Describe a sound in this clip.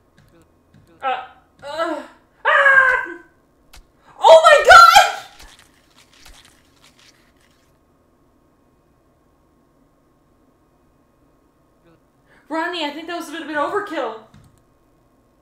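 A young woman shrieks and exclaims loudly into a microphone.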